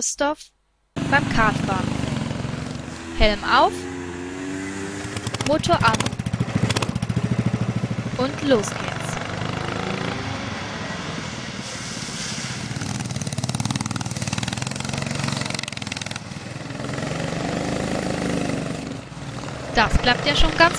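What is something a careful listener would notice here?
A go-kart engine roars and buzzes as the kart races around a track.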